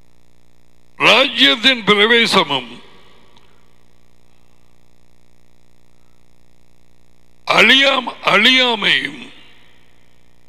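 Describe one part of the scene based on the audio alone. A man speaks into a headset microphone in short, measured bursts.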